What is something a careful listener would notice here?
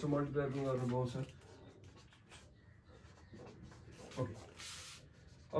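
A marker scratches on a whiteboard.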